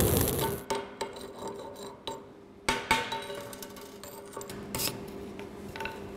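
A metal hammer chips and knocks on metal.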